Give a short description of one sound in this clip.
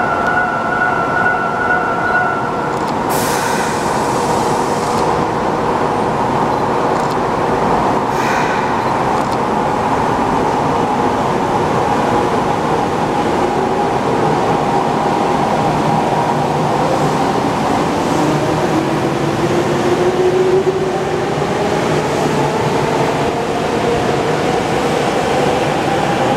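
A subway train rumbles loudly through an echoing underground station.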